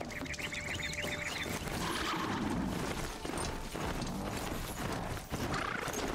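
Metal hooves clatter over the ground.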